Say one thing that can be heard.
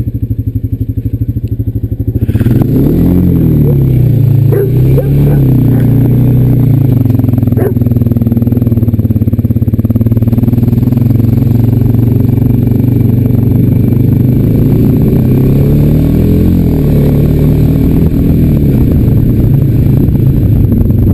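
A quad bike engine idles, then revs loudly and rises and falls in pitch.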